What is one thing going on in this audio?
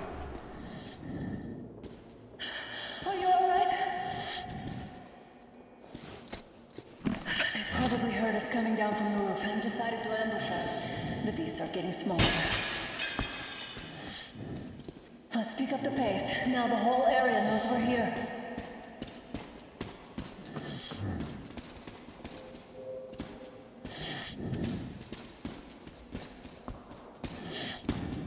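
Footsteps crunch over debris.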